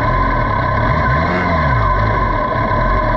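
A motorcycle engine revs up briefly and settles.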